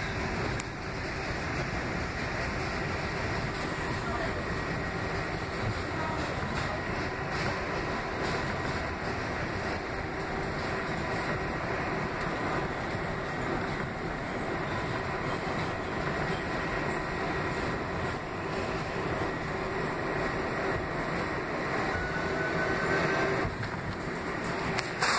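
A train rumbles and rattles steadily along the tracks, heard from inside a carriage.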